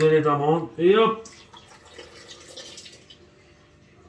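Liquid pours into a jug.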